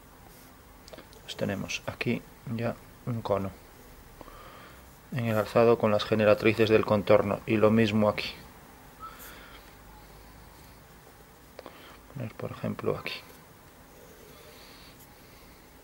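A pen scratches lightly across paper.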